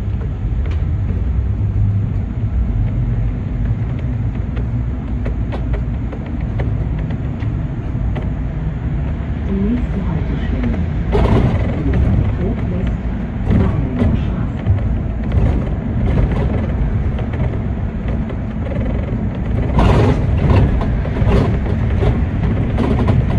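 Tyres roll and rumble over the road.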